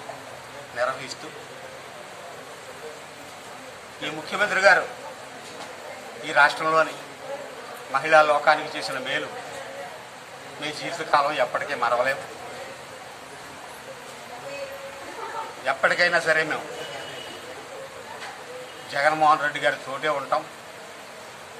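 A middle-aged man speaks into a microphone in bursts, with pauses between phrases.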